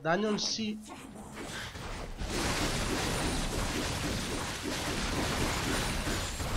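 Game combat effects clash and crackle.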